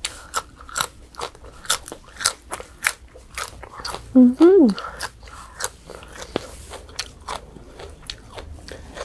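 A young woman crunches and chews crisp greens loudly, close to a microphone.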